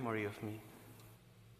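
A man sings a short phrase in a reverberant hall.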